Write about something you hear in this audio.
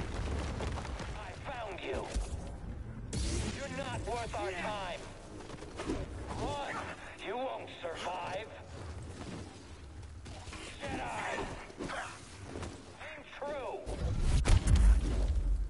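A lightsaber hums and buzzes as it swings.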